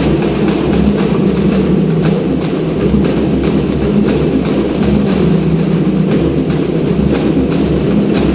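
Many feet step and tap in rhythm on a wooden floor in a large echoing hall.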